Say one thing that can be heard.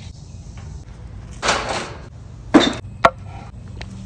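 A metal fire ring scrapes and clanks as it is set down.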